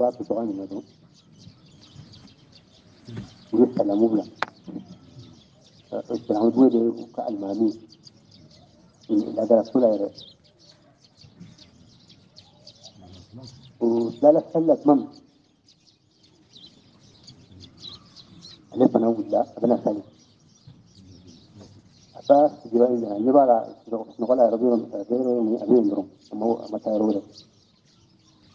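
An elderly man speaks slowly in short phrases with long pauses.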